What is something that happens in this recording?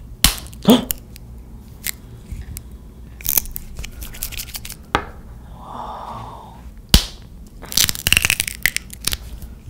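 A small plastic object clicks and knocks against a hard surface.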